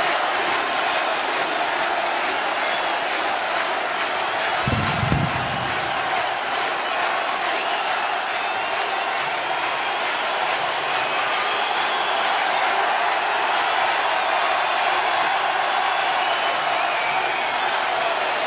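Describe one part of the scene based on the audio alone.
A large crowd whistles and shouts.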